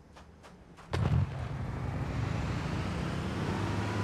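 A vehicle engine starts up and roars loudly.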